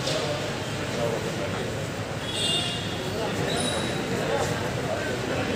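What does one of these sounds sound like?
A crowd of people murmurs and chatters around.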